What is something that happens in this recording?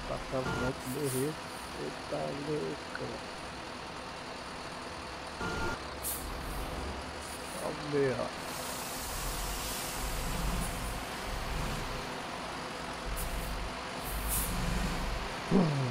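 A diesel coach bus engine runs under load.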